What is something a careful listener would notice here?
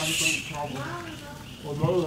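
A baby monkey squeals nearby.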